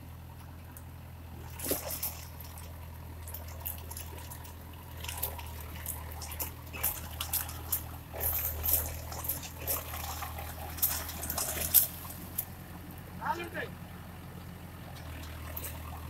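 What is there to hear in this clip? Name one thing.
A diesel tractor idles.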